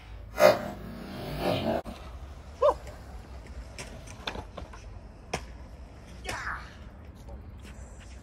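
Skateboard wheels roll and rumble on concrete outdoors.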